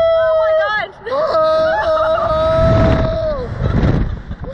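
A woman screams loudly close by.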